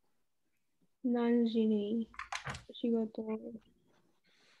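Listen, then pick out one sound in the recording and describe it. A young woman speaks with animation, close to a webcam microphone.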